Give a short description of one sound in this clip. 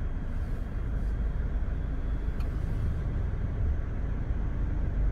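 A car engine idles and hums low nearby.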